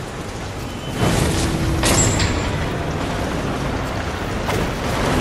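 A burst of fire whooshes and crackles.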